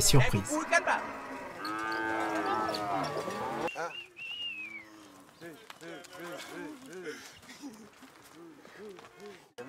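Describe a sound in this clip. Cattle moo and low repeatedly.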